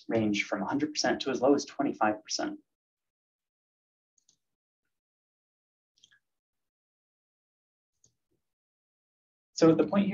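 A man speaks calmly into a microphone, as if giving a talk.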